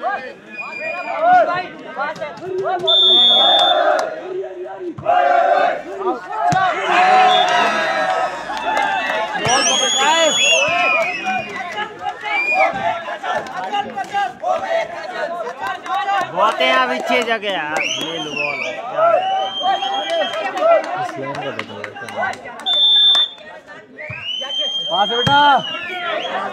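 A volleyball thuds as a player hits it.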